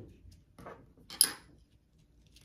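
Scissors snip thread.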